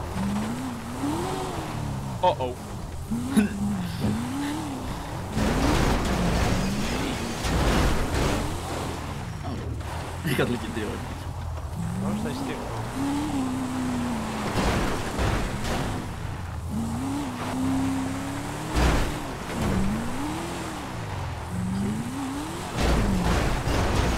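A car engine revs up and down, rising and falling in pitch.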